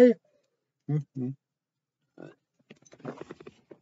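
A young man gulps a drink from a can.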